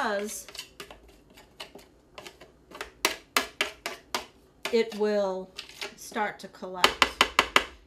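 A spoon scrapes and taps against a bowl.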